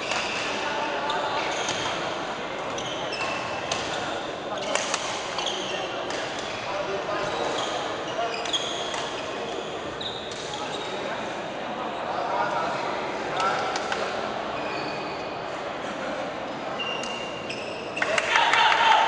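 Shuttlecocks are struck with rackets in a large echoing hall.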